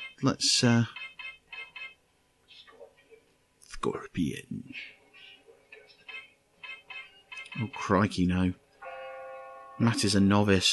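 Electronic menu beeps and chimes play.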